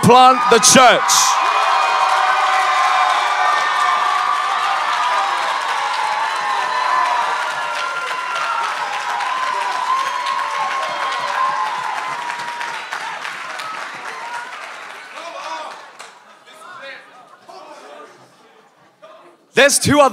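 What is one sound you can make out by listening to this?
An audience laughs and cheers, then slowly quiets down.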